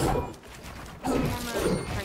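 A pickaxe strikes wood with sharp knocks.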